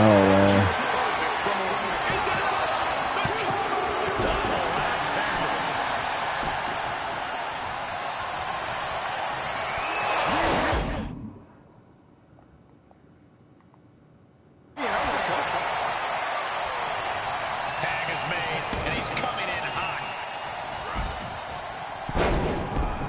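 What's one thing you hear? A large crowd cheers and roars in an arena.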